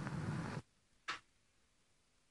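A gramophone's needle is lifted off the record with a soft thud.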